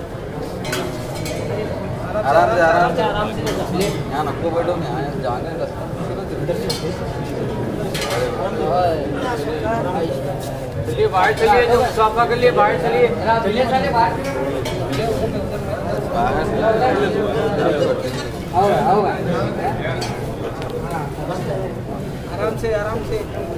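A crowd of men chants and murmurs loudly nearby.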